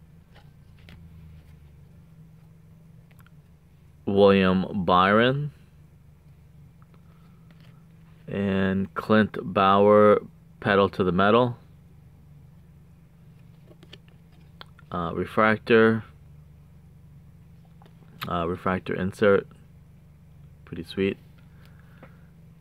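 Trading cards slide and rustle softly against each other.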